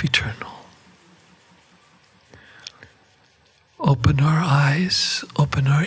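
An elderly man speaks slowly and earnestly into a microphone.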